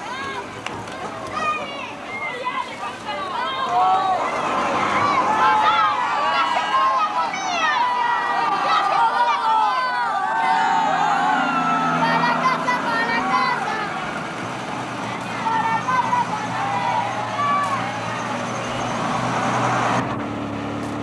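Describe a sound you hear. A bus engine rumbles as the bus pulls away.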